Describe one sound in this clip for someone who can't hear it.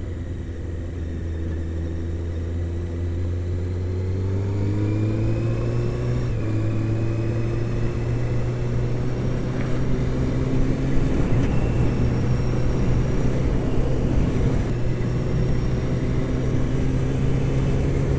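A motorcycle engine hums steadily and rises in pitch as it speeds up.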